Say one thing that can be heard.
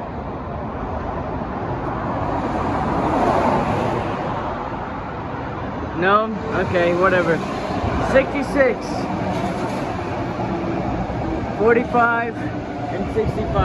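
A light rail train rumbles closer and pulls into the station.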